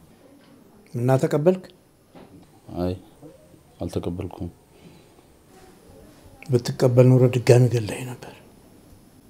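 An elderly man speaks calmly and slowly, close by.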